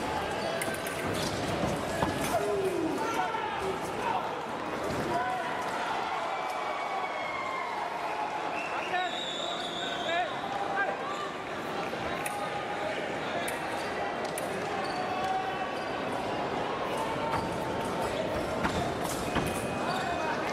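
Fencing blades click and clash.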